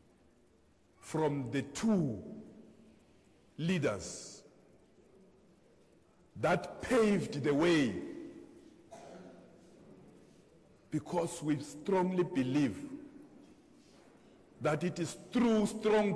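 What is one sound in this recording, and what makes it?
A middle-aged man speaks with animation to an audience, in bursts with pauses.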